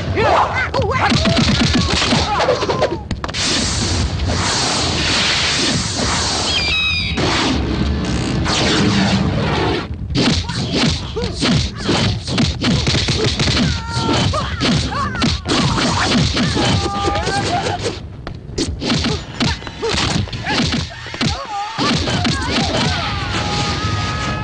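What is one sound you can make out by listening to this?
Punches land on bodies with heavy thuds.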